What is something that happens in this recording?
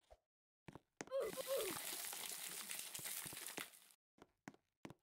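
An eggshell cracks and breaks open.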